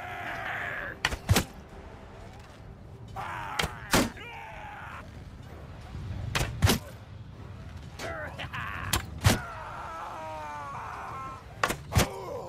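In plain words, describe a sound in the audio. A bowstring twangs sharply as arrows are shot, again and again.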